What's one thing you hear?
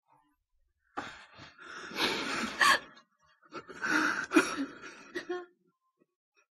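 A young woman sobs and cries loudly.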